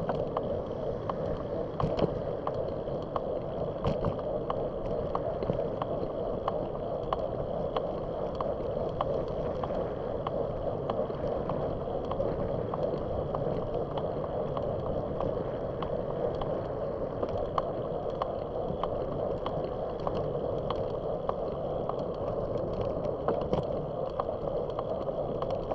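A bicycle rattles and clicks over bumps in the road.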